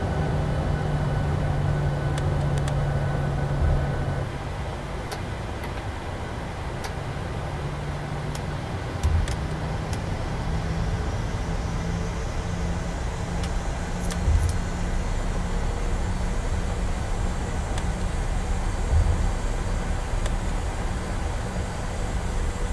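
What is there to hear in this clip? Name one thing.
Aircraft wheels rumble and thump over the runway.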